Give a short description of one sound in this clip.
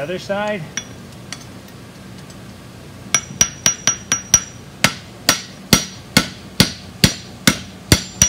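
A hammer strikes metal on an anvil in quick, ringing blows.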